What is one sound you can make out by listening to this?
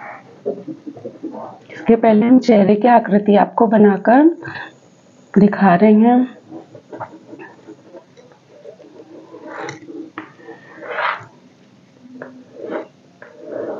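Chalk scrapes and taps on a board.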